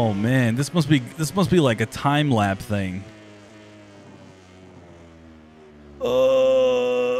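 A racing motorcycle engine whines and revs.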